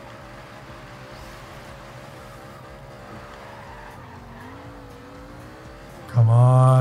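A sports car engine hums steadily, then roars loudly as it revs up.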